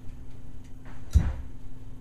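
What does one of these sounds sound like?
A finger presses a button with a soft click.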